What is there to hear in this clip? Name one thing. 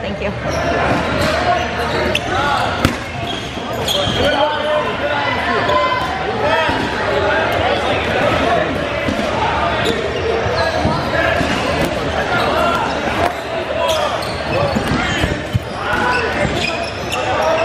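Rubber dodgeballs bounce and smack on a hardwood floor.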